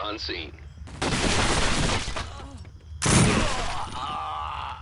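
A rifle fires a burst of loud, sharp shots.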